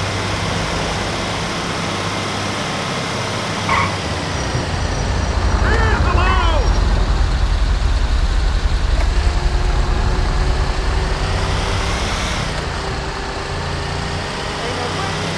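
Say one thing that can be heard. A heavy truck engine rumbles steadily, growing louder for a while as the truck turns.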